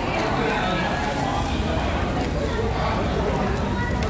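Food sizzles on a hot grill.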